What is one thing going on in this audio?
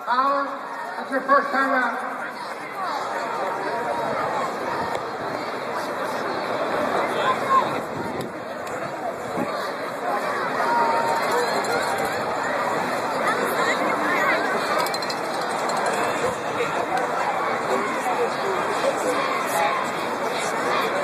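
A large crowd chatters and cheers in an open-air stadium.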